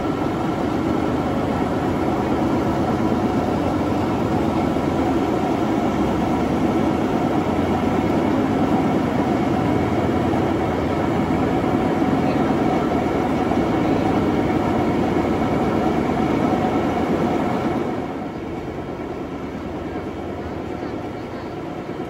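A conveyor belt rumbles and rattles steadily over its rollers, close by.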